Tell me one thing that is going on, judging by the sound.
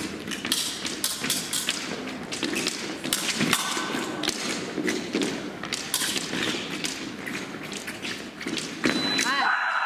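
Fencers' feet stamp and shuffle on a metal piste.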